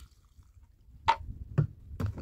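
A plastic jug thumps down on stony ground.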